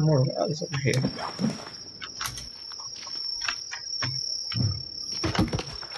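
A heavy log thuds as it is picked up.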